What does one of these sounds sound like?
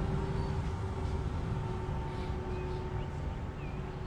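A bus drives past with a low engine rumble.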